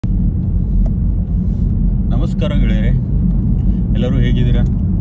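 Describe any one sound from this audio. A car engine and road noise rumble steadily inside the car.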